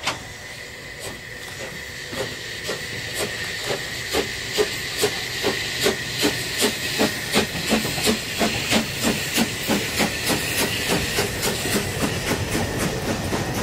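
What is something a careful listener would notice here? A steam locomotive chuffs rhythmically as it pulls past close by, getting quicker.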